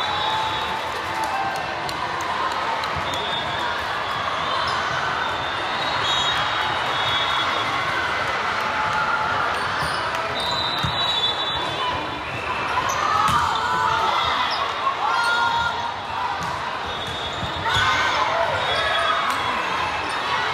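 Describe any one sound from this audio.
A crowd of players and spectators chatters and calls out in a large echoing hall.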